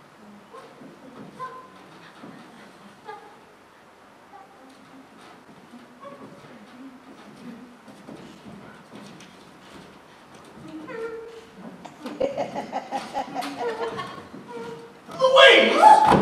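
A young woman speaks on a stage, heard from a distance in a hall.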